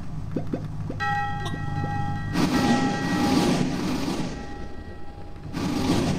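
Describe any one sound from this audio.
A railway crossing bell rings in a game.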